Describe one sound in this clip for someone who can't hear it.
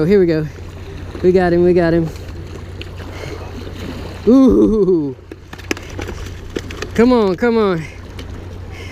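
Small waves lap and splash against rocks.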